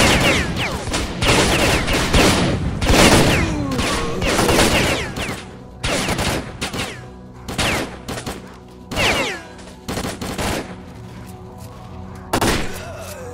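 A rifle fires in loud bursts of gunshots.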